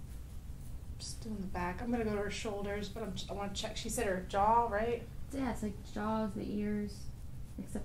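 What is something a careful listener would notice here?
A woman speaks calmly and clearly close by.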